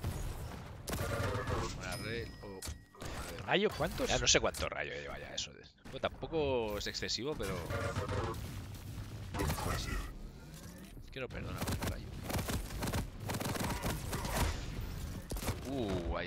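Gunshots fire rapidly in a game.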